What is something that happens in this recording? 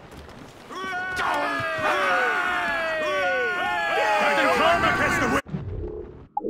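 A group of men shout and call out together close by.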